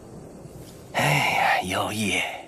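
An elderly man speaks gravely, close up.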